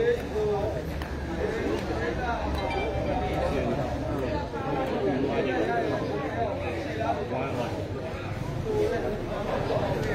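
A crowd of spectators chatters loudly all around.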